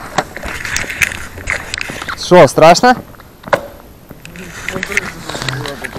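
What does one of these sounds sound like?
Boots crunch on ice.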